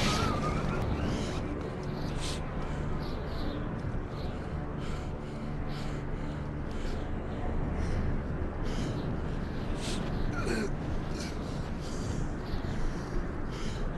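A man speaks quietly and strains close by.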